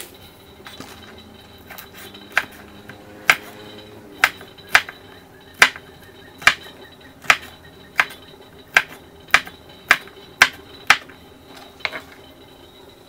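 A cleaver chops sharply on a wooden board, again and again.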